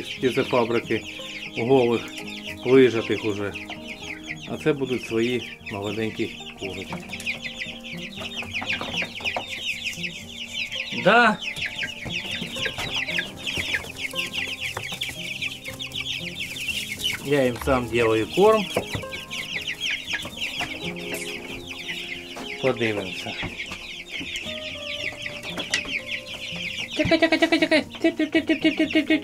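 Many chicks peep continuously and shrilly.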